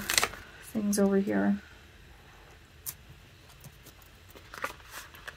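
Paper crinkles and rustles softly as it is handled.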